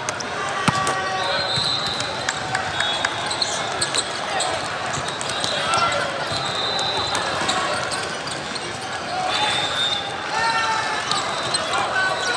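A crowd of players and spectators chatters in the background.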